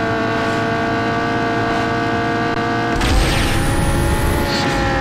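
A racing car engine roars at high speed, shifting up through the gears.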